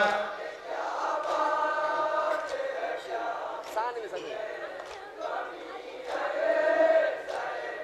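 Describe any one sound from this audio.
A young man chants a mournful lament loudly through a microphone.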